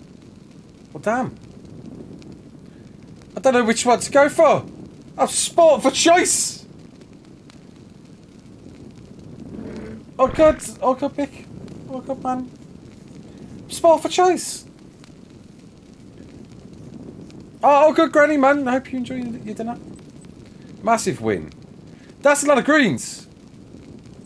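A man talks in bursts into a close microphone, calmly and with animation.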